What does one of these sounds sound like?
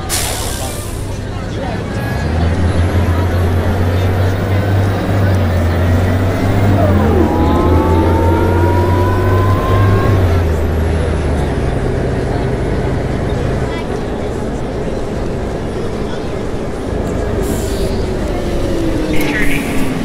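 A diesel city bus engine drones as the bus drives along a street.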